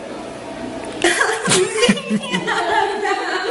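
A second young woman laughs loudly.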